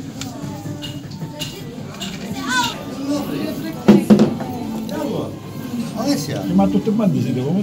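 Several adult men and women chatter nearby.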